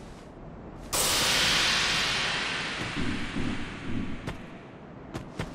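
A loud shimmering chime swells and slowly fades.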